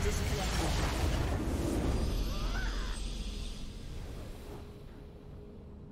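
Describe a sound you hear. A triumphant game fanfare swells and then fades.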